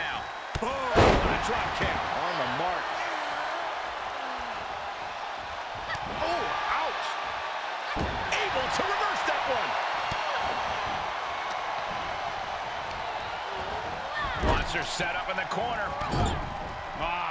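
Bodies slam heavily onto a wrestling mat with loud thuds.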